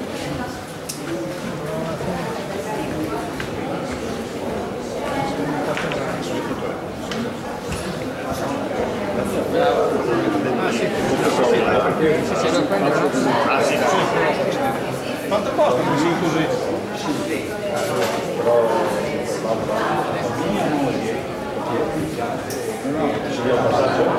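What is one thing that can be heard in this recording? Many men and women talk at once close by, in a lively crowd murmur.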